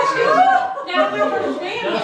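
A woman laughs heartily close by.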